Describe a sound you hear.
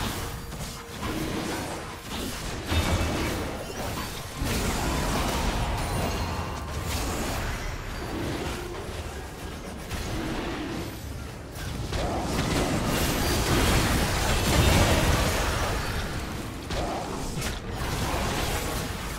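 Fantasy battle sound effects of spells and blows crash and boom in a video game.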